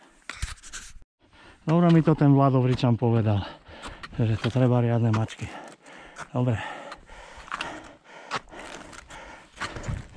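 A hiker's footsteps crunch on snow.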